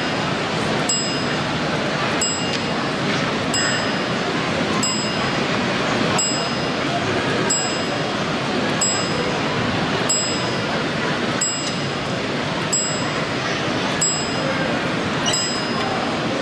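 A level crossing bell dings at a slow, even pace.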